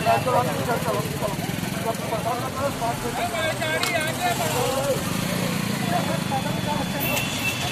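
A motorcycle engine idles nearby.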